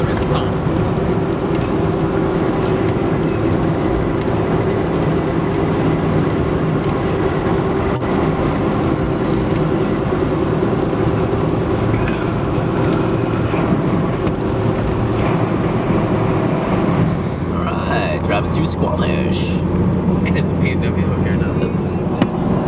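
A vehicle engine hums steadily with road noise.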